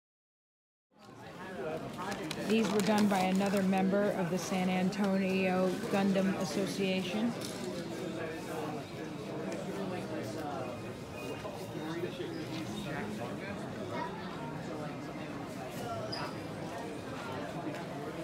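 A crowd of people chatters and murmurs nearby.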